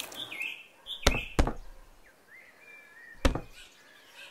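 Plastic buckets knock against each other.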